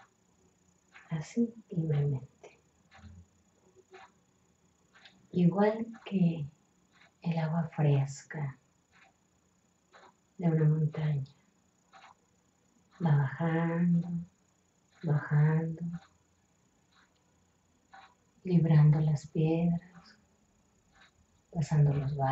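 A woman speaks softly and close by, in short phrases with pauses.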